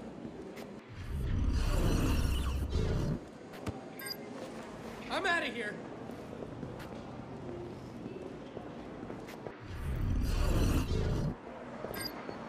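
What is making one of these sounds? A glass door slides open with a whoosh.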